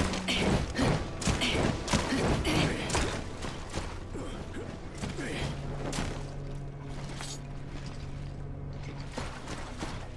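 Footsteps clatter quickly across roof tiles.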